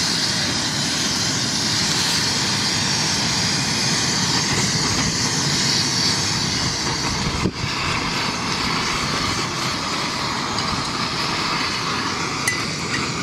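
A gas stove burner roars steadily.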